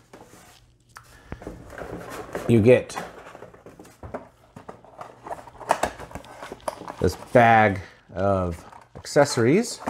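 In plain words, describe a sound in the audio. A cardboard box rustles and scrapes as it is opened.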